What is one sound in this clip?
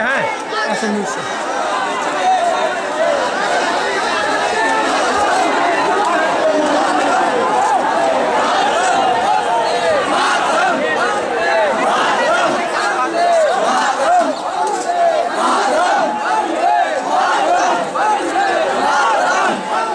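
A large crowd of men chatters and shouts loudly all around.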